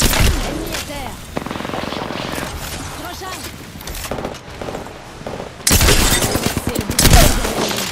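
Gunfire rattles out in loud, rapid bursts.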